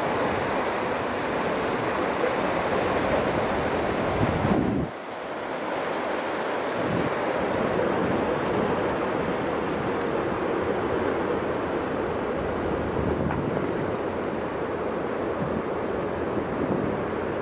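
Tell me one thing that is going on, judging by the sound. Wind gusts outdoors, rushing and buffeting steadily.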